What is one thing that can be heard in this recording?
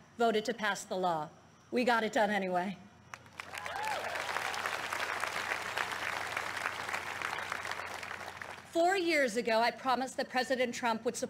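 A young woman speaks calmly into a microphone, heard through a loudspeaker.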